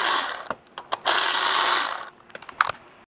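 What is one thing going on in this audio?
A cordless power drill whirs in short bursts.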